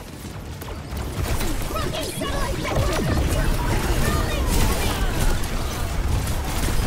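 Energy blasts whoosh and explode, growing busier toward the end.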